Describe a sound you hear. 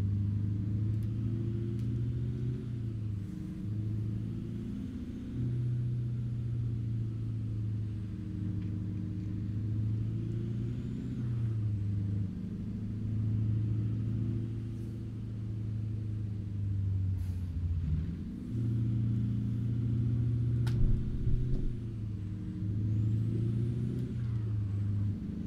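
A truck's diesel engine rumbles steadily, its pitch rising and falling as it shifts gears.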